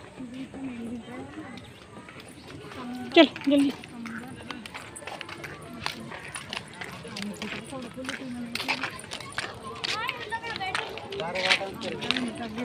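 A young child talks and squeals close by.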